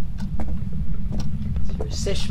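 A door handle rattles.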